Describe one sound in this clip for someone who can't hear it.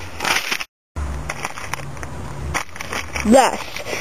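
A crisp packet crinkles in a boy's hands.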